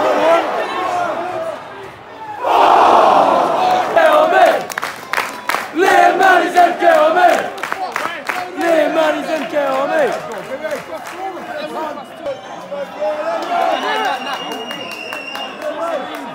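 A large crowd sings and chants loudly in a big open stadium.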